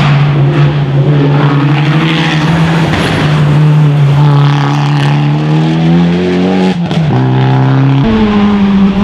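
A rally car engine revs hard as it climbs and shifts gear.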